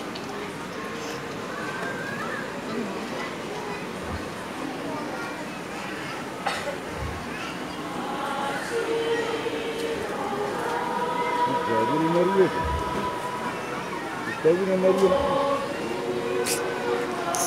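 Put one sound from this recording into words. A large crowd of men and women chatters and murmurs.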